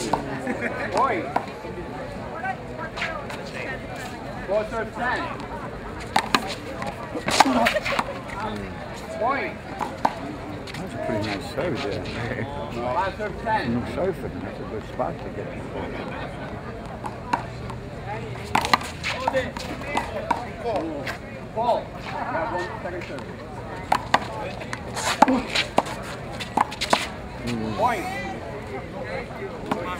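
Men talk and call out nearby, outdoors.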